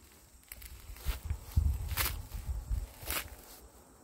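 A boot stamps down on a spade.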